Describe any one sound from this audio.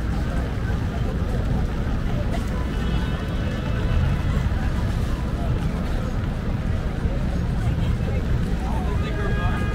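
A busy crowd murmurs outdoors in the rain.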